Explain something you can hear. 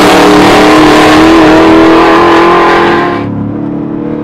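A sports car engine roars loudly as the car speeds past.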